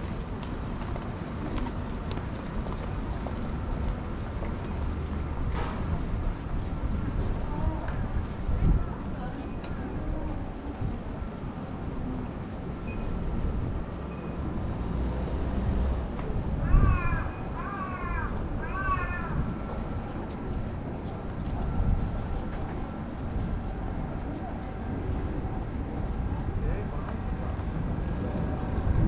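People talk faintly in the background outdoors.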